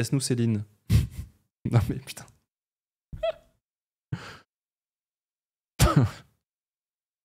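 A young man speaks in short bursts close to a microphone.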